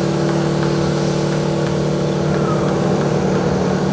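Water jets hiss and spray.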